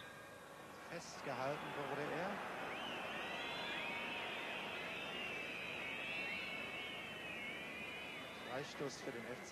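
A large stadium crowd roars loudly, then dies down.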